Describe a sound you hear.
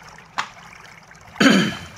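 A finger clicks a laptop touchpad.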